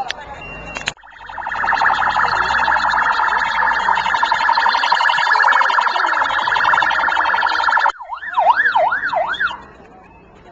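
A police siren wails loudly nearby, rising and falling.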